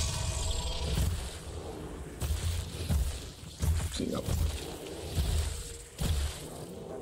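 A monster's claws slash and strike with sharp thuds.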